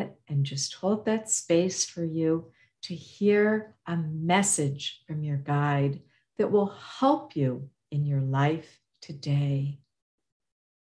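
A woman speaks calmly and warmly over an online call.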